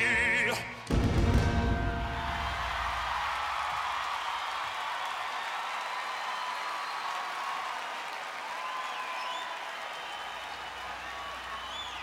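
A large crowd cheers and shouts in a big hall.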